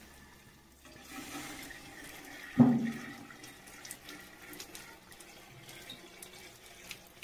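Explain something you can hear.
Charcoal clatters as it is poured from a tin.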